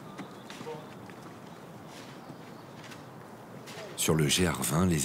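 Footsteps crunch on rock.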